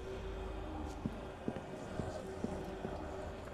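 Footsteps climb stone stairs.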